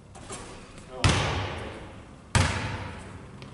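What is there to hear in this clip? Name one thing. A basketball bounces on a wooden floor with a sharp thud that echoes around a large hall.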